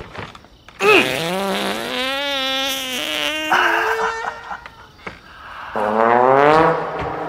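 Young men laugh.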